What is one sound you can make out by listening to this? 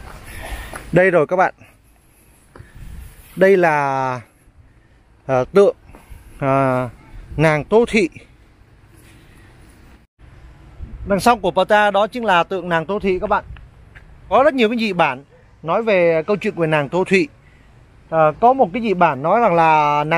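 A middle-aged man speaks close by, calmly explaining.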